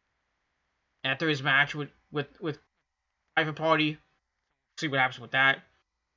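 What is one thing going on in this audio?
A man talks calmly close to a webcam microphone, in short bursts with pauses.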